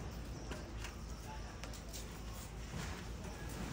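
Fabric rustles as a monkey climbs out of a hammock.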